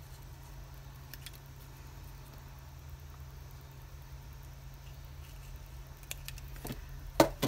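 Small scissors snip through paper with quiet clicks.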